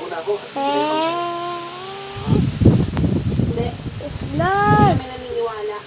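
A young boy speaks and exclaims loudly close to a microphone.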